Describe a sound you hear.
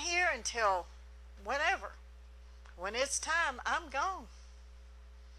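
A middle-aged woman speaks with emphasis through a microphone.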